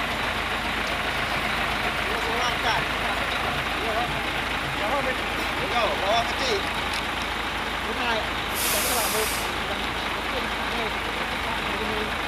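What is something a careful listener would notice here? A heavy truck engine rumbles steadily nearby.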